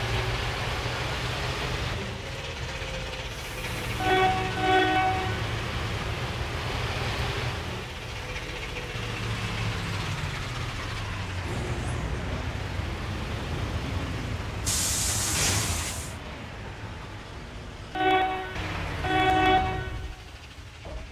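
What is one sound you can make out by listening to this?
A bus engine hums and rumbles steadily as the bus drives.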